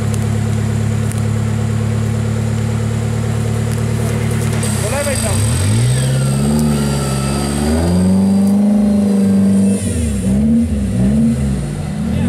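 An off-road 4x4's engine labours, then revs hard.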